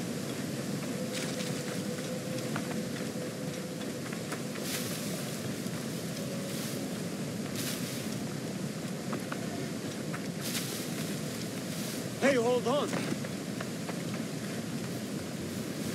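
Quick footsteps crunch on sand.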